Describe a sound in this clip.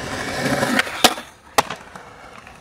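A skateboard clacks sharply onto the ground.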